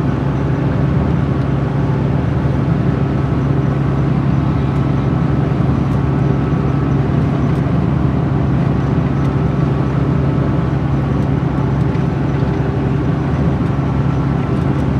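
A vehicle engine hums steadily from inside.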